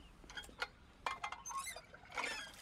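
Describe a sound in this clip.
A metal pan clanks down onto stone.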